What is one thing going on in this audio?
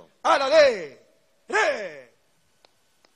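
A man shouts commands loudly outdoors.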